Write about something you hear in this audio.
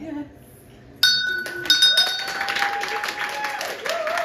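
A hand bell rings twice with a bright, lingering tone.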